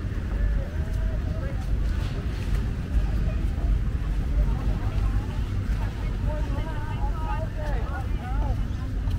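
Children and adults chatter faintly in the distance.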